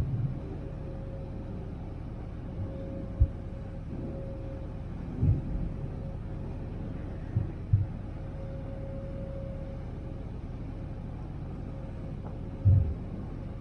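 Wind buffets the microphone in gusts.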